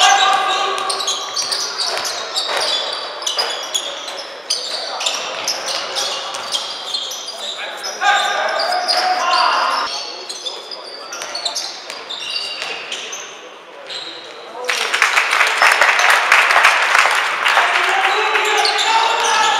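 A basketball bounces on a sports hall floor.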